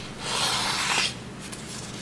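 A ruler slides across paper.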